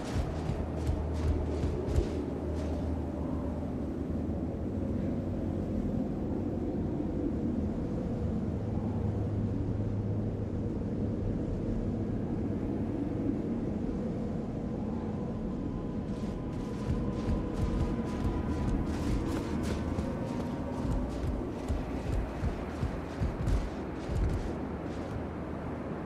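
Footsteps in armour thud on wooden planks.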